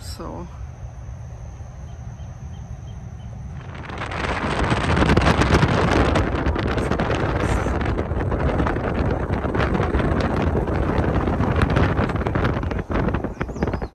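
A car drives along with a low rumble.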